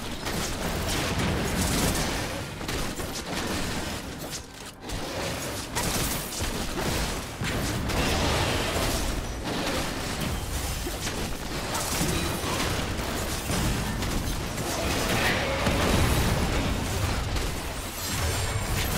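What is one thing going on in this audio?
Spell blasts and magic effects crackle and boom in a game battle.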